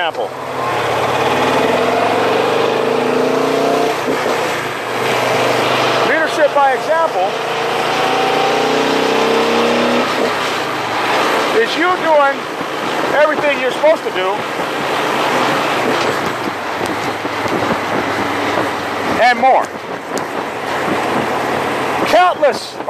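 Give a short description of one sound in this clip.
A middle-aged man talks with animation close to a microphone, outdoors in wind.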